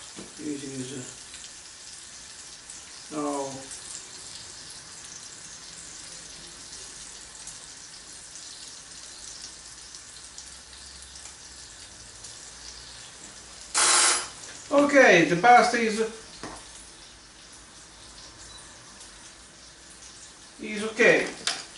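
A man talks calmly nearby, in short bursts.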